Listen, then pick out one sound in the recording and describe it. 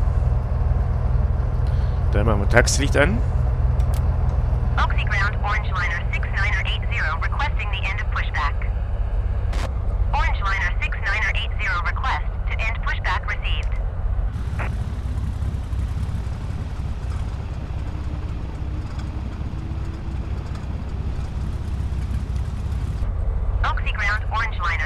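A single-engine piston plane's engine rumbles low while taxiing at low power.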